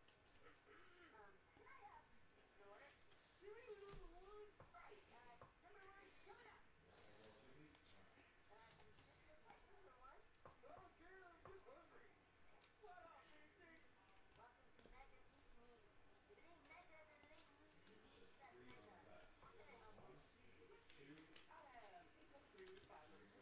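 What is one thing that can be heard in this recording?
Card packs crinkle and rustle in a man's hands.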